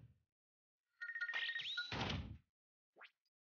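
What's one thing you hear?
A menu chime rings out.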